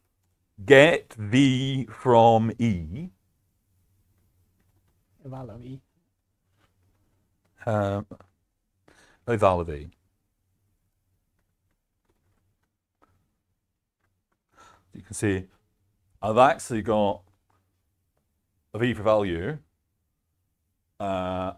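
A man speaks calmly and close to a microphone, in short phrases with pauses.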